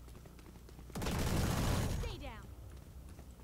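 A rifle fires a loud, rapid burst of shots.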